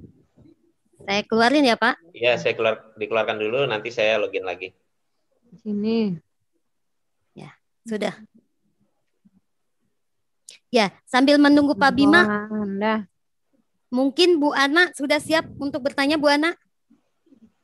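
A man speaks calmly into a headset microphone over an online call.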